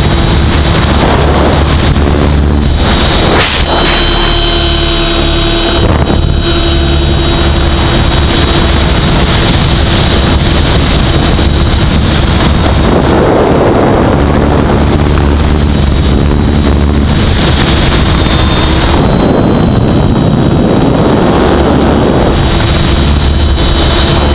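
A model helicopter's motor whines loudly and steadily, rising and falling in pitch.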